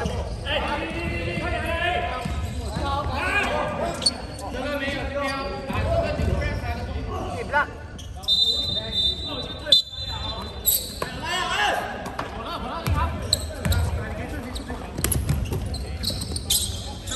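Voices of young men and boys chatter and call out in a large echoing hall.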